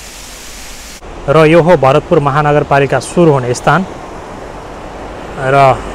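A river rushes over rapids.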